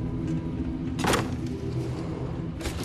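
A heavy metal door slides open with a loud clunk.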